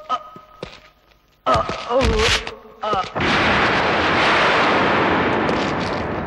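Feet scuffle and thud on dirt as men fight.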